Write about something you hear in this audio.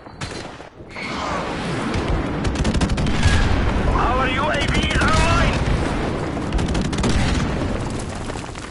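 An explosion booms and rumbles loudly.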